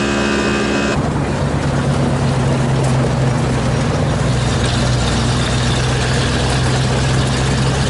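A diesel log skidder engine rumbles.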